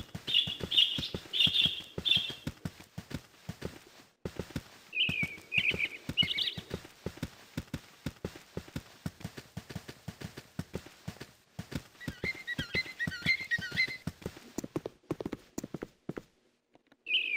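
Footsteps tread steadily along a path.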